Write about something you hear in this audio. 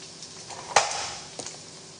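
A pan clatters against a stovetop.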